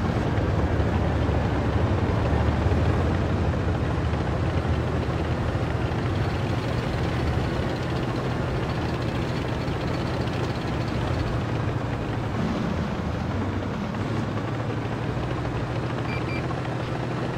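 Tank tracks clatter and grind on sand.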